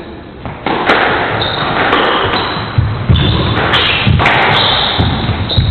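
A squash ball smacks hard off rackets and walls in an echoing court.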